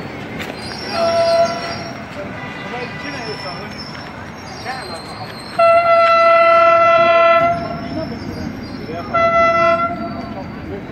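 A train horn blows several long blasts.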